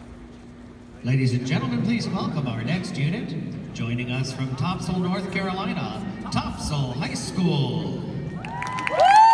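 A man talks close by in a large echoing arena.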